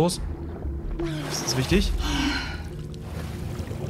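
A young woman gasps loudly for air.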